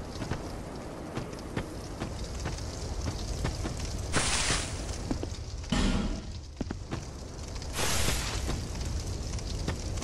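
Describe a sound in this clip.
Footsteps thud on soft ground.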